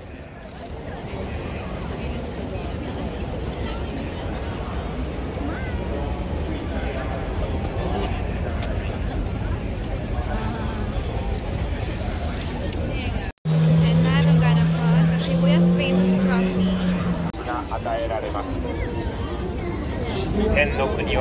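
A crowd murmurs outdoors in a busy street.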